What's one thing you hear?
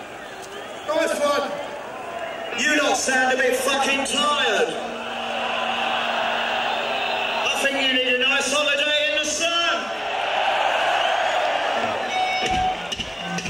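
A large crowd outdoors shouts and cheers loudly.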